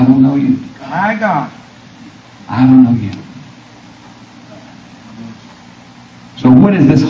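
A man preaches into a microphone over loudspeakers in an echoing hall, with long pauses.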